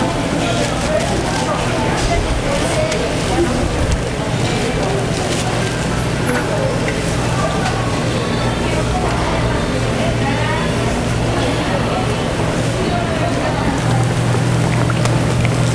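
Hot oil sizzles and crackles steadily.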